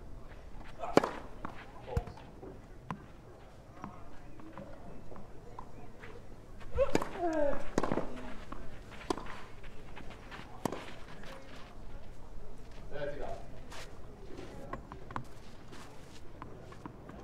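Rackets hit a tennis ball with sharp pops.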